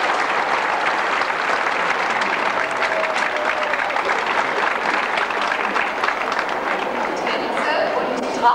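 A large audience applauds in an echoing hall, then the applause dies down.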